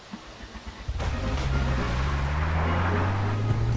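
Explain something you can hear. A car engine starts and revs, rising in pitch.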